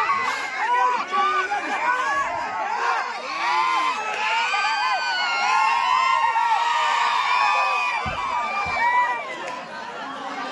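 A large outdoor crowd of men cheers and shouts loudly.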